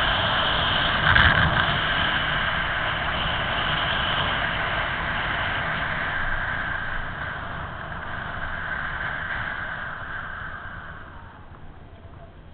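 Wind roars loudly past a moving motorcycle and slowly dies away.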